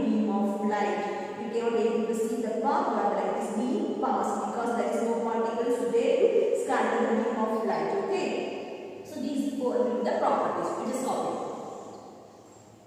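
A woman explains calmly and clearly, close by.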